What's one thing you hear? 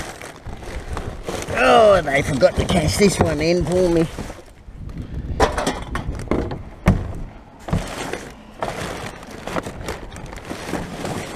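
Plastic bags and paper rustle and crinkle.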